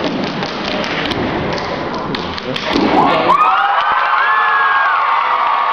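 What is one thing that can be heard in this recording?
Young dancers stomp their feet on a wooden stage.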